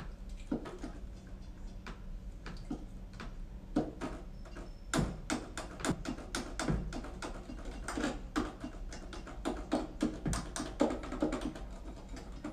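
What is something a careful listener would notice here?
Plastic keyboard keys and pads click and tap in quick, uneven bursts.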